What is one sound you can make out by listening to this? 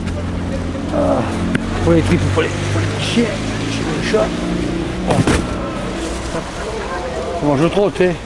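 A man talks quietly up close.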